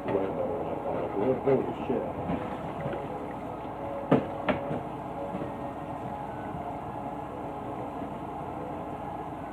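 Water runs steadily from a tap.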